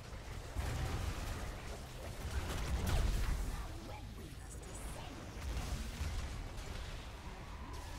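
A laser beam zaps loudly.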